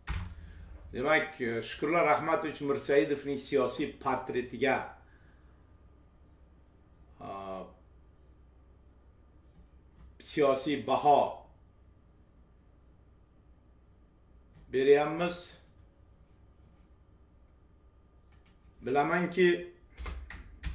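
A middle-aged man speaks calmly in short bursts, heard through a microphone.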